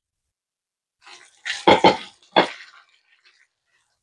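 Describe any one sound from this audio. A spatula scrapes and stirs food in a pan.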